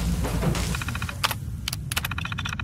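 A computer terminal beeps and chirps as it starts up.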